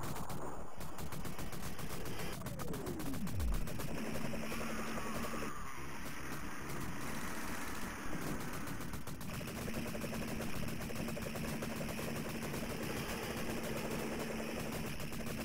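Rapid gunfire rattles steadily in an arcade game.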